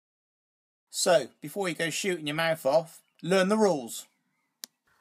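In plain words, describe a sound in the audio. A man speaks close up with animation.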